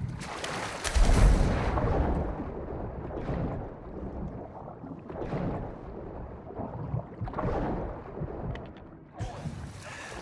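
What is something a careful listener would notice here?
Muffled water swirls with slow underwater swimming strokes.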